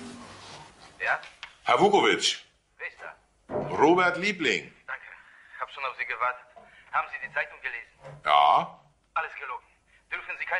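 A middle-aged man talks calmly into a phone, close by.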